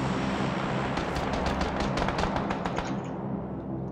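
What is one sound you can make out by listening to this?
Footsteps tread quickly across a hard floor.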